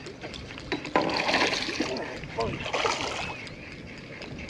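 Water splashes beside a boat as a fish thrashes.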